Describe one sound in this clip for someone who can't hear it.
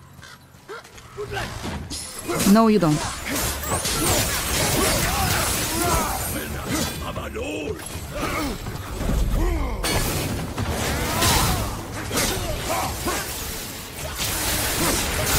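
Blades on chains whoosh and slam into enemies in a fierce fight.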